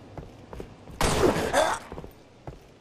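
A gun fires with a loud explosive blast.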